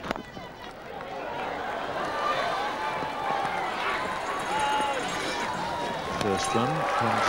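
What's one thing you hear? A crowd cheers and shouts in a large open ground.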